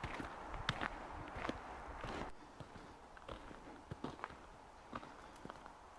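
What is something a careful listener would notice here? Boots crunch on icy snow with each step.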